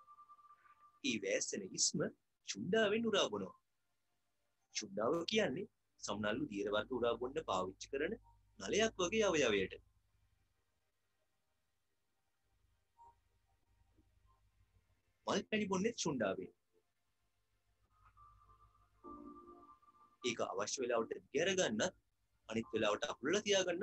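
A man speaks calmly through a microphone, heard over an online call.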